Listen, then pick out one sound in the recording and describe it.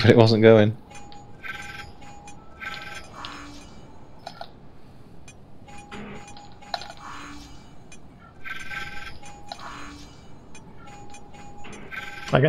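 A console gives short electronic beeps.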